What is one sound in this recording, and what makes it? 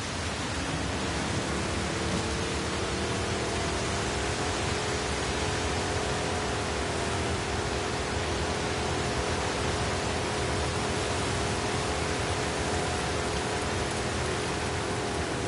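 An outboard motor drones steadily as a small boat speeds across water.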